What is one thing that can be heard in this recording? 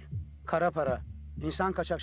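A man talks on a phone.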